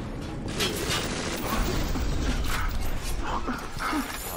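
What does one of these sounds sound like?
Fire roars in a burst.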